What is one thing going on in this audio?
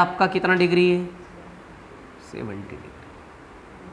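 A man speaks nearby in a calm, lecturing tone.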